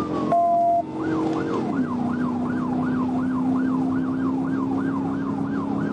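A siren yelps in a fast, repeating pattern.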